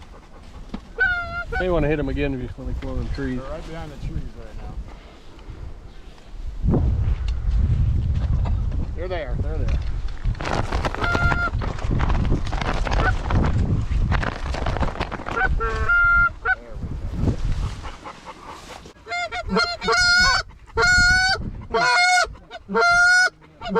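Geese honk loudly and repeatedly close by.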